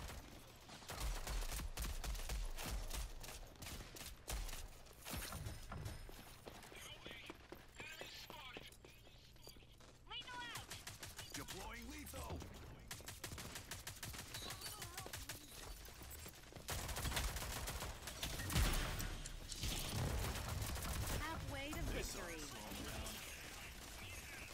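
Automatic rifle gunfire rattles in rapid bursts.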